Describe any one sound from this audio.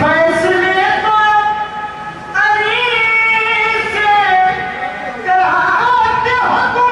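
A young man sings a melodic recitation loudly into a microphone, heard through loudspeakers.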